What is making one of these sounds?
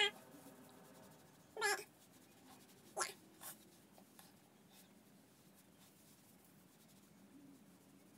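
A paper wipe rustles against skin.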